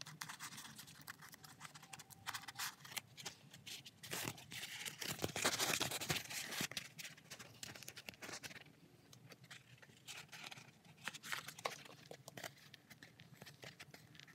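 Thin plastic sheet crinkles and rustles as hands bend it.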